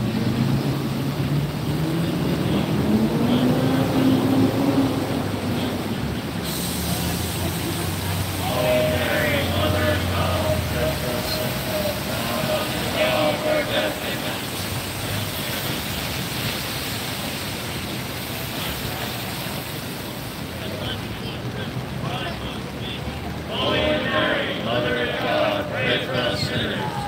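Car tyres hiss on a wet road as they pass.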